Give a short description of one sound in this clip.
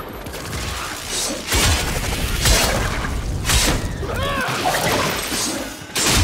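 Blades clash and slash with sharp metallic hits.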